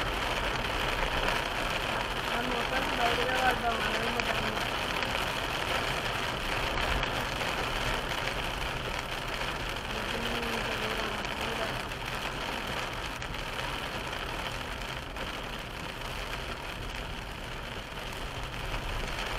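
Rain patters on a car's windscreen.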